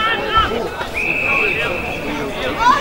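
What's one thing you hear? A referee's whistle blows once, long and shrill.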